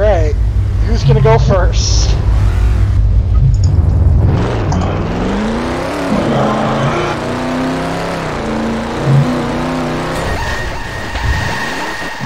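A car engine roars and revs up.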